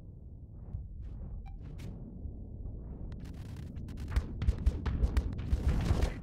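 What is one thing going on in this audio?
Spaceship guns fire in rapid bursts of shots.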